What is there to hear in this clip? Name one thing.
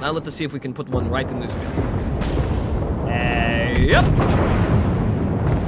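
Explosions rumble and crackle nearby.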